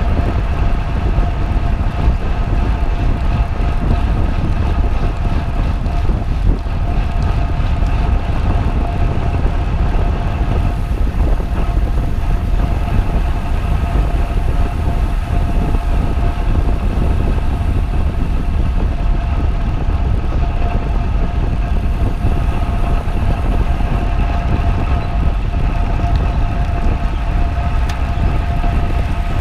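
Bicycle gears whir steadily.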